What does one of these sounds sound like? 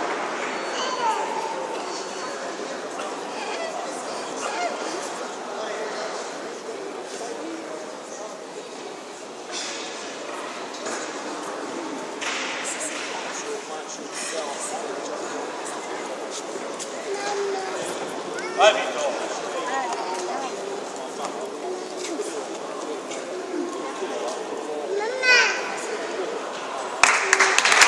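A large crowd chatters and murmurs throughout in a big echoing hall.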